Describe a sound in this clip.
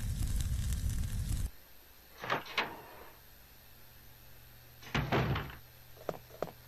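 A door opens with a creak.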